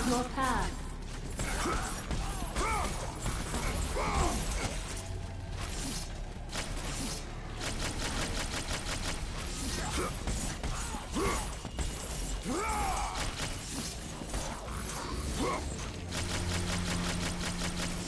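Blades slash and strike in a video game fight.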